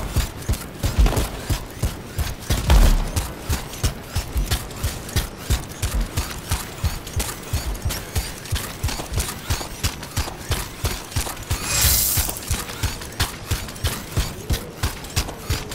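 Heavy metal footsteps thud rapidly on dirt.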